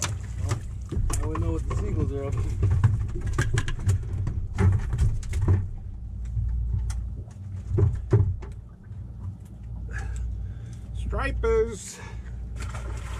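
A man talks nearby, outdoors in wind.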